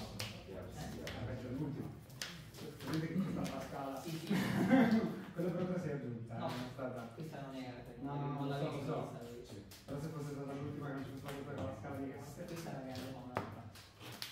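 Sleeved cards riffle and rustle as they are shuffled.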